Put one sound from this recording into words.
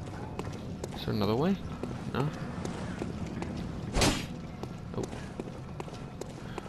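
Footsteps run across cobblestones.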